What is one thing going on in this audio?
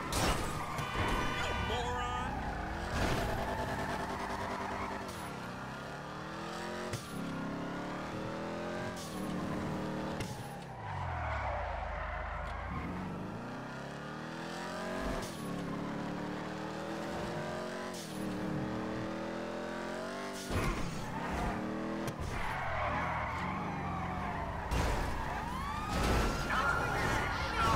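A car engine revs hard and climbs through the gears again and again.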